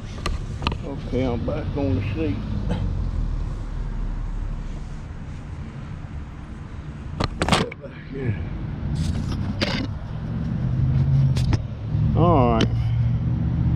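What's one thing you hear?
A man talks briefly, close by.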